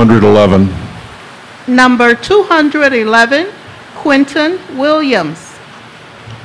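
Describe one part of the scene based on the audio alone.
An elderly man speaks calmly into a microphone over loudspeakers in a large hall.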